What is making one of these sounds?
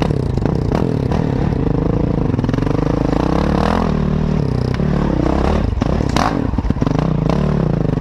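A dirt bike engine revs and roars up close, rising and falling in pitch.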